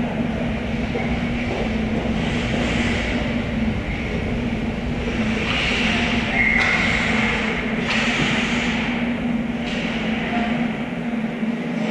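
Hockey sticks clatter and knock against the puck and the ice.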